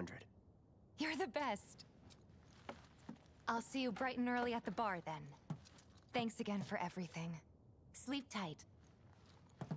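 A young woman speaks warmly and cheerfully.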